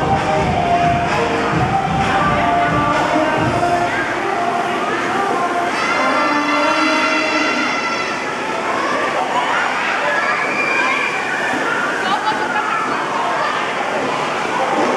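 A crowd of children and young people chatter and laugh nearby in a large echoing hall.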